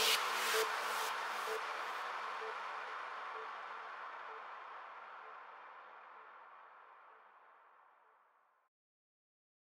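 Electronic dance music plays and slowly fades out.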